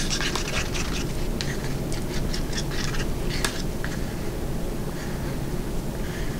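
A stick stirs and scrapes inside a small cup.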